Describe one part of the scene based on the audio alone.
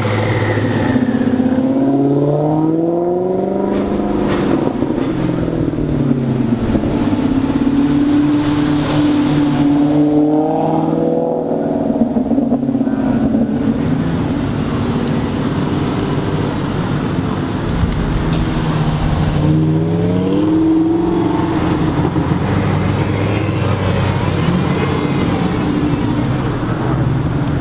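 Tyres squeal on tarmac.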